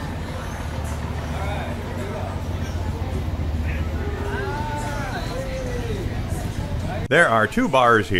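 Men and women chat and laugh in a lively room.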